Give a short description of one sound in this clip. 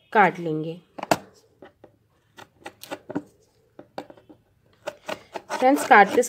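A cardboard box rustles and taps as hands turn it.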